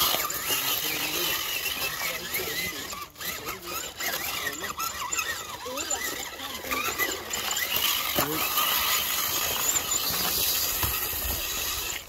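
The electric motor of a radio-controlled rock crawler whines.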